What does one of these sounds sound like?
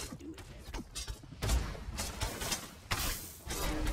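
Blows and weapon strikes clash in a fight.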